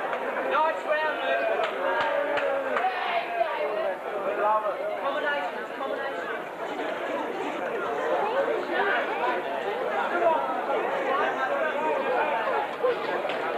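A crowd chatters and shouts in a hall that echoes.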